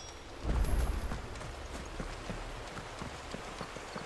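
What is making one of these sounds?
Footsteps crunch along a dirt path.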